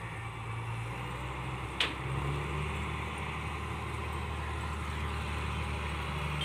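A combine harvester engine rumbles steadily nearby.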